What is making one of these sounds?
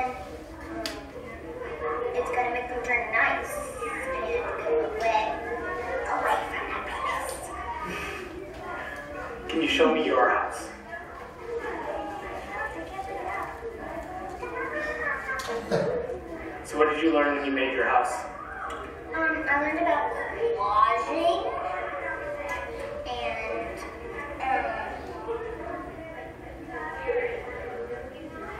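A young girl talks with animation through a loudspeaker.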